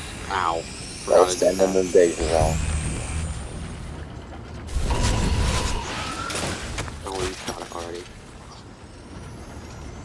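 A robot bursts apart with a crackling blast.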